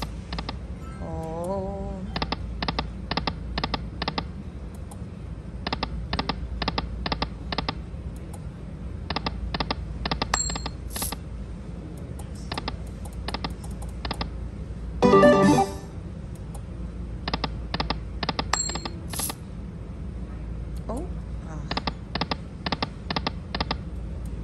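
A slot machine's reels spin and stop with quick, even clicking beeps.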